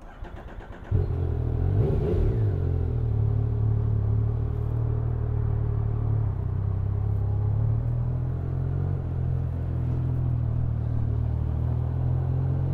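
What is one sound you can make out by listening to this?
A motorcycle engine rumbles steadily as the bike pulls away.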